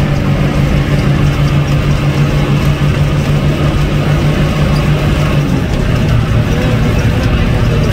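Traffic roars past on a road.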